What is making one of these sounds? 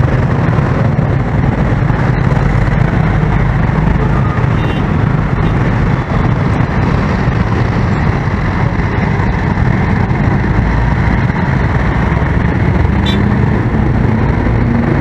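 Motorcycle engines idle and rumble close by in heavy traffic.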